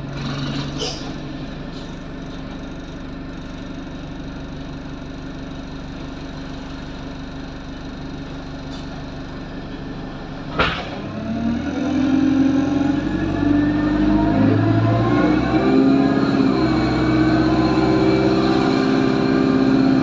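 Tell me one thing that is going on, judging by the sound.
A bus engine hums steadily and rises in pitch as the bus pulls away.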